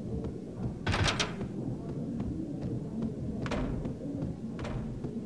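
Footsteps walk steadily across a floor.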